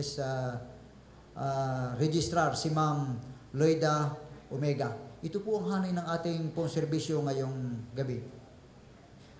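A man speaks calmly into a microphone through a loudspeaker.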